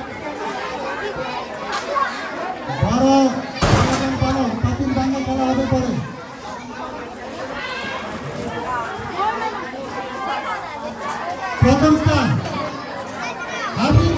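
A crowd of people talks in the background.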